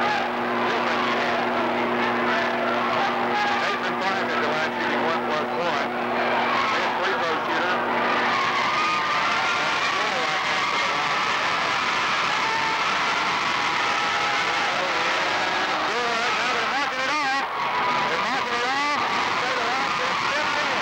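A large crowd chatters and cheers in an echoing gym.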